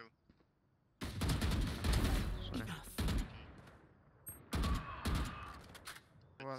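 A rifle fires in bursts.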